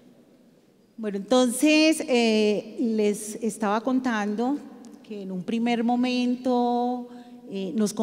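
A middle-aged woman speaks with animation into a microphone, heard through loudspeakers.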